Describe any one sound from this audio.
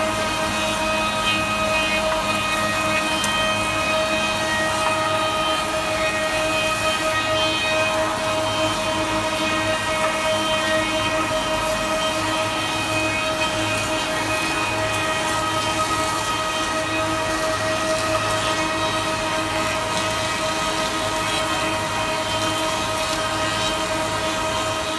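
A woodworking machine hums loudly and steadily.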